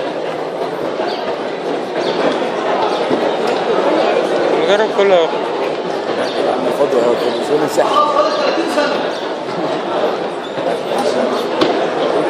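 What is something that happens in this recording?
A crowd of young people chatters throughout a large echoing hall.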